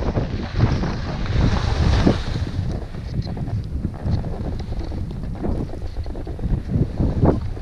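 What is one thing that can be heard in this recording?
Wind rumbles against a microphone.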